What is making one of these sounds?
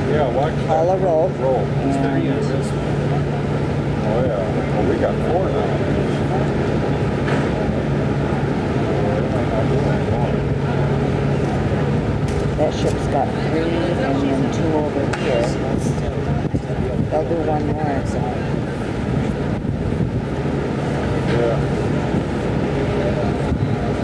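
A crowd of men chatters in the distance.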